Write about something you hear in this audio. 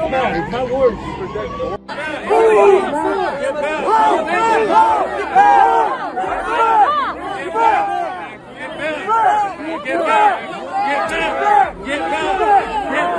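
A crowd of men and women shout and chant loudly close by, outdoors.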